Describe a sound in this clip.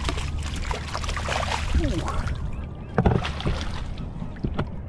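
Water splashes as a fish thrashes in a landing net.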